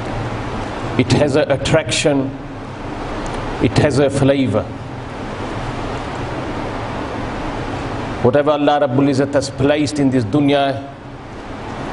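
A man speaks calmly into a clip-on microphone, in bursts with pauses.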